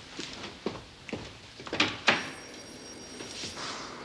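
A door handle clicks and a door opens.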